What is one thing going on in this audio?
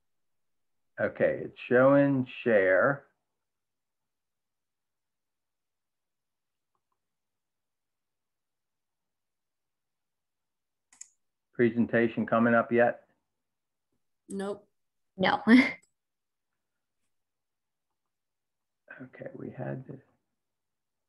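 A middle-aged man speaks calmly through an online call, in short phrases with pauses.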